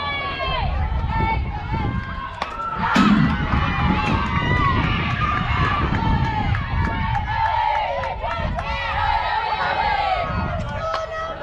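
Young women shout and cheer excitedly outdoors.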